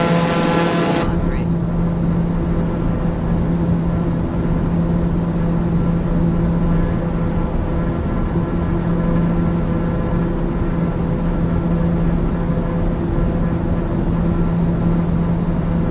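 A single-engine turboprop drones, muffled inside the cockpit.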